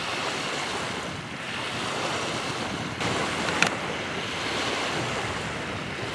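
Small waves lap and ripple on a lake.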